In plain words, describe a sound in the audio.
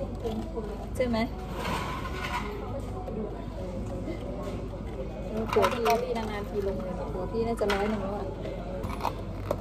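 Ice cubes clink and rattle against a cup.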